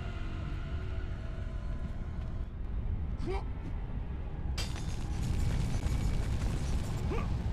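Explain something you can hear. A deep rumble drones steadily.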